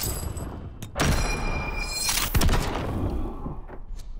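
Sparks burst and crackle with a loud whoosh.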